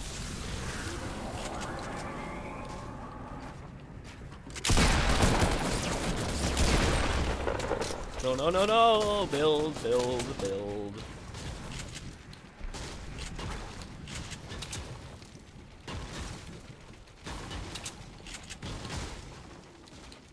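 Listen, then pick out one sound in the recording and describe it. Wooden walls snap into place with knocking thuds.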